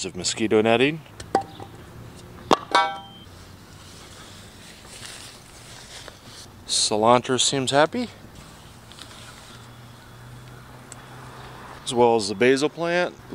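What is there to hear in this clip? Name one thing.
A fabric cover rustles as it is handled.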